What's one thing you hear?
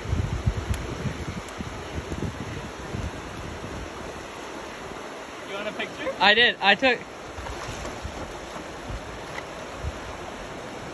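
Water laps and splashes against rocks.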